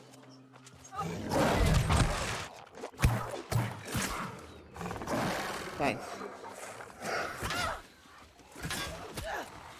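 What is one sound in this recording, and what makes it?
Blades clash and strike in a fast fight.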